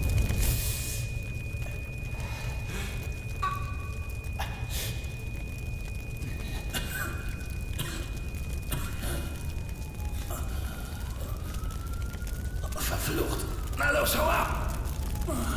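A man grunts and groans with strain.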